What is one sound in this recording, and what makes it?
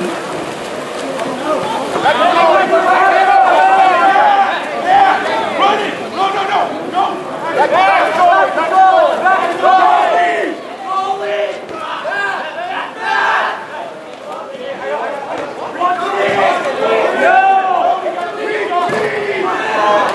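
Young men and spectators shout and call out loudly outdoors.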